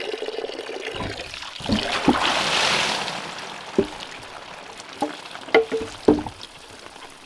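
A heavy log thuds and scrapes against wooden poles.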